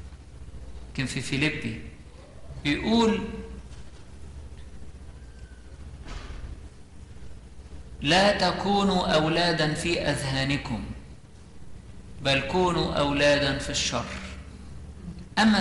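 An elderly man chants into a microphone in a large echoing hall.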